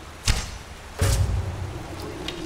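An arrow strikes its target with a thud.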